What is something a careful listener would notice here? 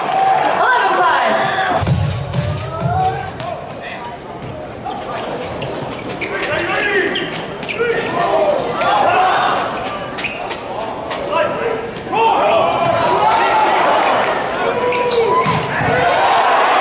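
A crowd cheers in a large hall.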